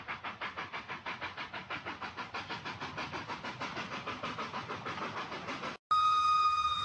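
A small model train clicks rhythmically over its rail joints.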